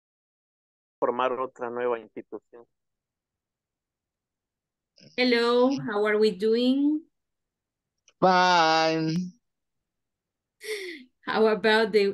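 A woman speaks calmly, heard through an online call.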